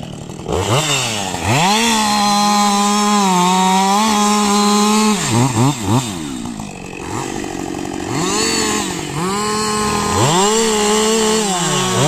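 A chainsaw engine revs up and down loudly.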